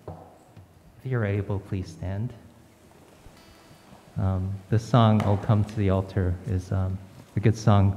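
A man speaks into a microphone in a large echoing room.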